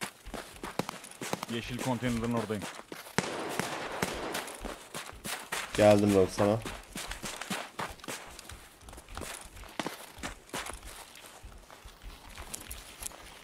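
Footsteps crunch on snow at a steady pace.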